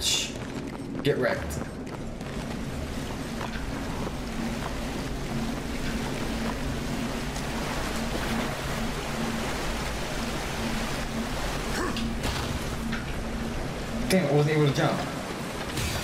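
A young man talks into a close microphone.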